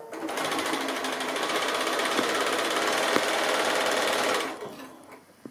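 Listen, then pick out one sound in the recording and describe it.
A sewing machine whirs rapidly as it stitches.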